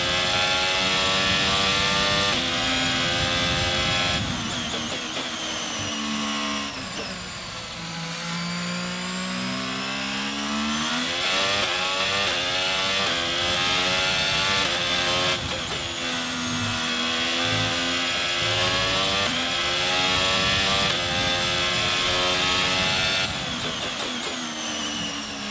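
A racing car engine screams at high revs, dropping in pitch through each gear change and climbing again.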